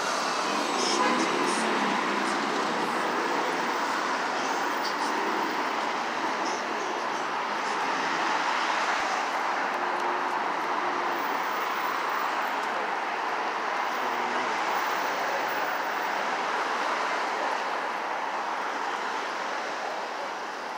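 Traffic rumbles steadily along a nearby street.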